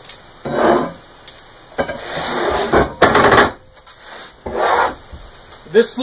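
Metal parts scrape and clank against a workbench.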